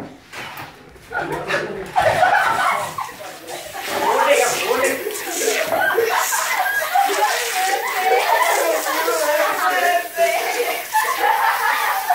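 A group of young men and women shout and laugh loudly and excitedly close by.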